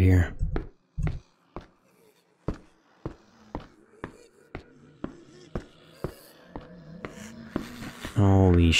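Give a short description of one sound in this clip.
Footsteps tap at a steady pace on a hard floor.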